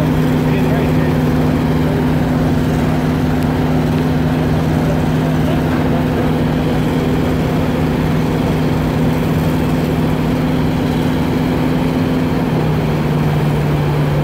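Water churns and rushes from a propeller.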